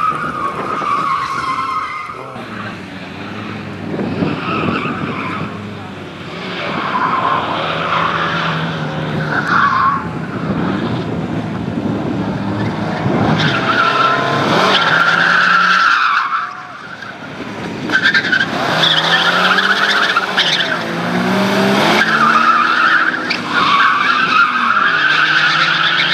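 A four-cylinder Lada rally car engine revs hard through tight turns.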